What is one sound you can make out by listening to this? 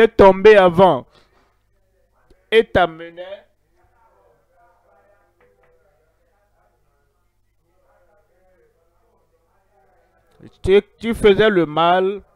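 An elderly man preaches with animation through a microphone, in short bursts with pauses.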